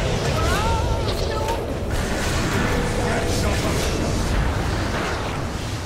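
Game spell effects crash and whoosh in a busy battle.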